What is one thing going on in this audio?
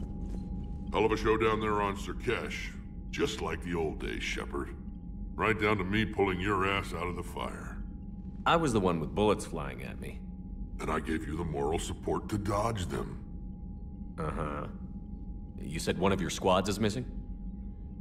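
A deep, gravelly male voice speaks slowly and with dry humour.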